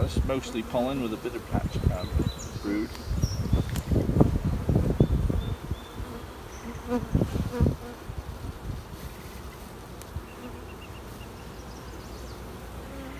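Honeybees buzz in a low steady hum.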